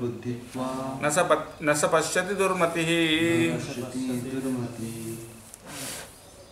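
A man sings a slow melodic chant close by.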